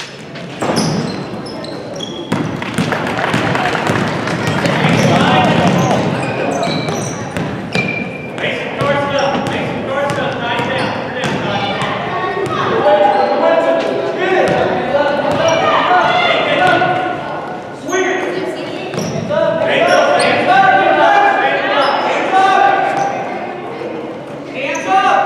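Sneakers squeak sharply on a hard floor in an echoing gym.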